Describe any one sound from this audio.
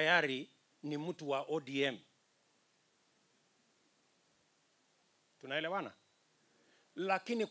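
A man speaks with animation through a microphone and loudspeakers, with long pauses.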